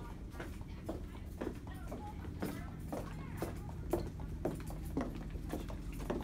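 Footsteps tap on a hard floor in a large indoor hall.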